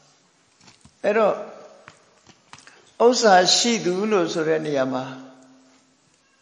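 An elderly man speaks calmly and gently close by.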